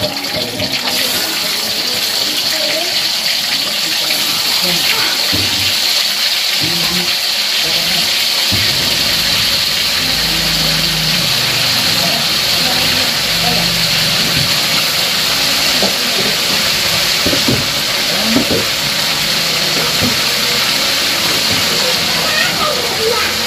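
Food sizzles steadily in hot oil.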